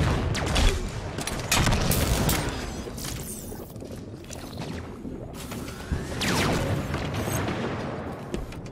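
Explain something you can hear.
Energy beams hum steadily.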